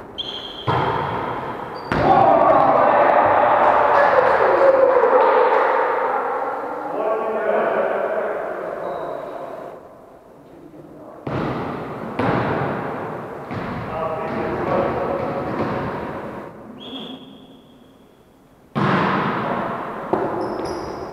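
A volleyball thuds off players' hands and arms in a large echoing hall.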